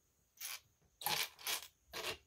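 Loose plastic pieces clatter and rattle as a hand rummages through them.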